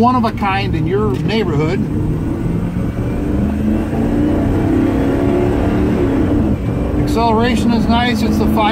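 A vehicle engine hums steadily from inside the cabin.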